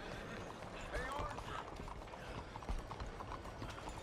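Horse hooves clop on a paved street.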